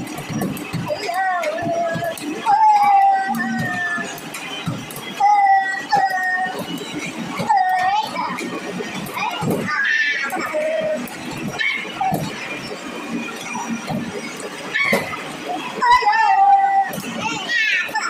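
Tyres squeal in the arcade game as a car drifts through corners.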